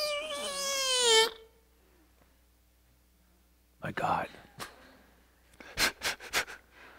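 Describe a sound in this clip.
An elderly man speaks calmly, heard through an online call.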